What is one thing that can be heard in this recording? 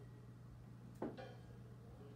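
A drum is struck once.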